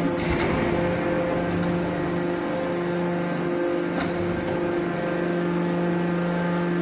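A hydraulic scrap metal baler hums as it runs.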